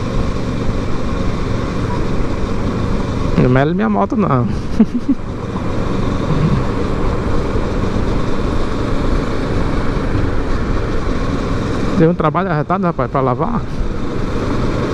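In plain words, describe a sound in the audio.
Wind rushes past a moving motorcycle rider.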